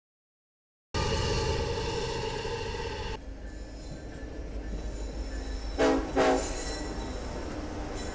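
A heavy freight locomotive engine rumbles and hums as it rolls past.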